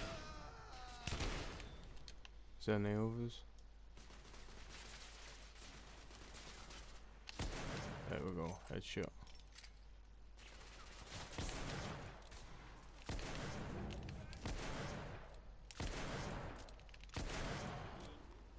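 Gunshots crack loudly and echo around.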